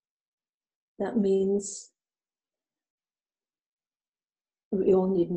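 An elderly woman speaks calmly and expressively close to a microphone.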